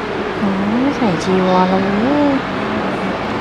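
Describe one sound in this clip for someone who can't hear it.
Men chant together in low voices.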